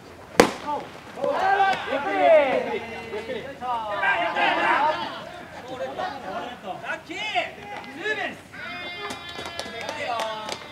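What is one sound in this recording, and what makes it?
Players shout and cheer across an open field.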